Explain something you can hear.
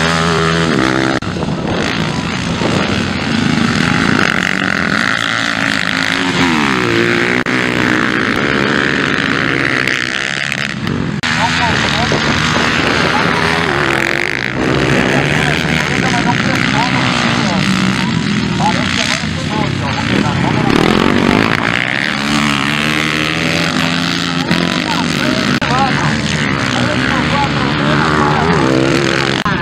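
Motorcycle engines rev and roar as dirt bikes race past.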